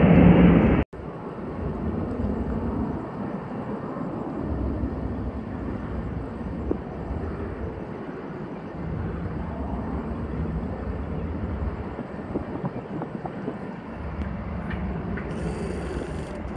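A jet airliner's engines hum steadily.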